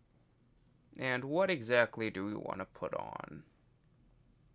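A synthesizer plays short, wobbling notes.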